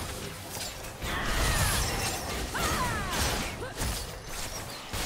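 Magic blasts whoosh and explode in quick succession.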